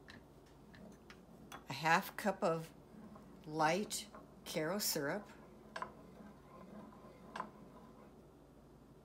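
A wooden spoon scrapes and taps against a metal pan.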